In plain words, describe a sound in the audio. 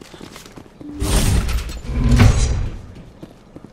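A heavy sliding door whooshes open.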